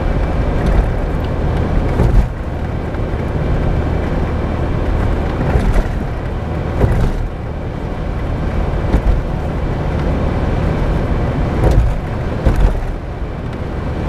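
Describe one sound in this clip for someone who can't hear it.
Tyres roar steadily on the road.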